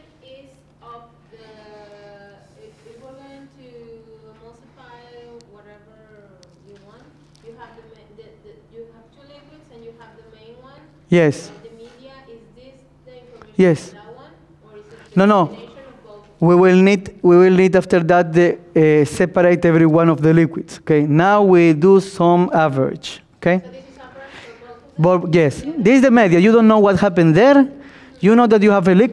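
A man speaks calmly to an audience, his voice at times loud and close through a microphone.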